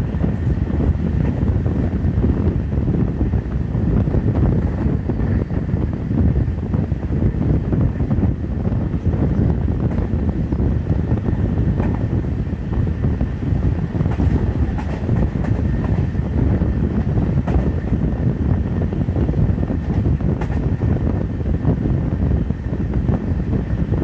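A train rumbles steadily along the rails, heard from an open window.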